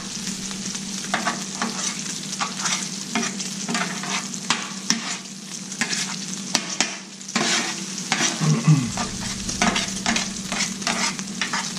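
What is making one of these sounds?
Meat sizzles on a hot griddle.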